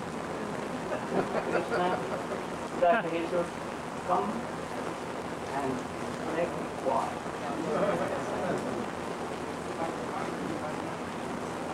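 An elderly man speaks calmly into a microphone, heard over a loudspeaker.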